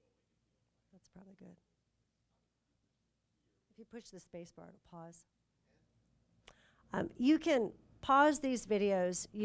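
A middle-aged woman speaks calmly into a microphone, heard over a loudspeaker.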